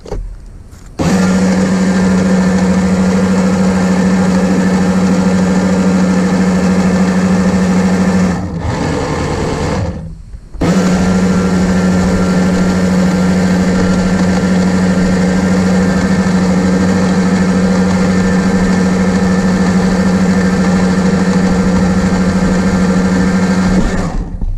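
A small electric motor whines steadily at a high pitch.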